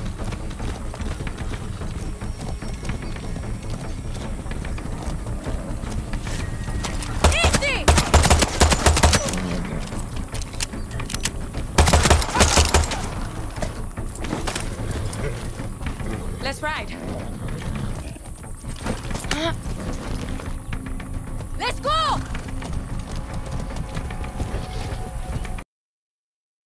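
Horse hooves thud steadily on the ground.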